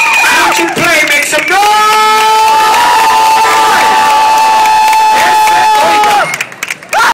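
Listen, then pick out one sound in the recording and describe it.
A large crowd claps along outdoors.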